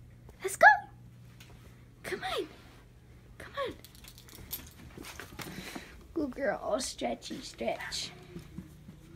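A dog whines and yelps in short high bursts close by.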